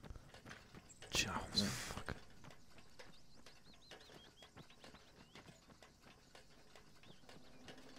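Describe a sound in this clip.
Boots clank on metal ladder rungs during a climb.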